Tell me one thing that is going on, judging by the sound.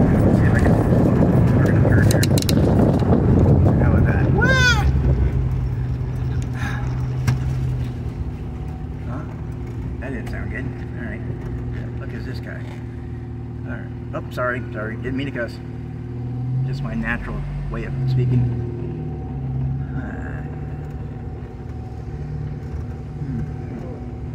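A car engine hums steadily from inside the vehicle.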